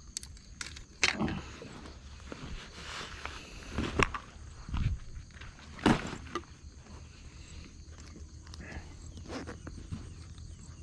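A bag rustles and thumps as a hand rummages through it.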